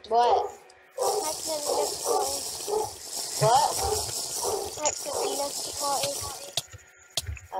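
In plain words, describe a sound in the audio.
A potion is gulped down with loud slurping sounds.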